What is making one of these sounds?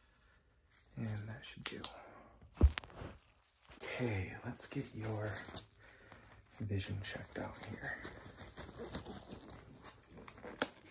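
A young man speaks calmly and close by.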